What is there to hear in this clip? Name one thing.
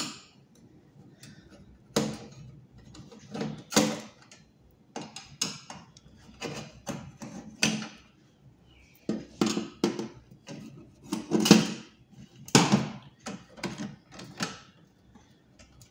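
Small metal parts click and rattle as they are handled.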